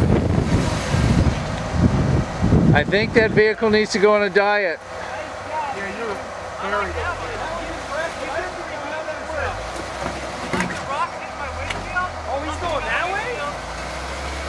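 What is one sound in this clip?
An off-road SUV's engine labours as it crawls over rocks.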